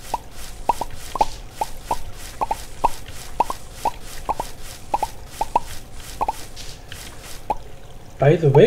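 Quick popping sounds repeat rapidly as crops break and are picked up.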